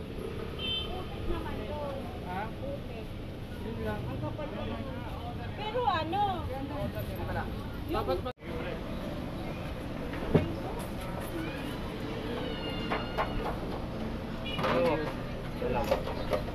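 Several people talk nearby.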